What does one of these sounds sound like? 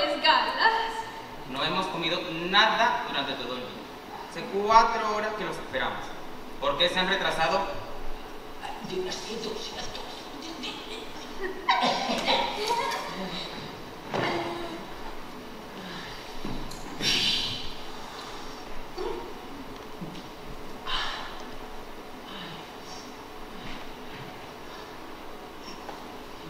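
A young man speaks with animation on a stage, heard in a large hall.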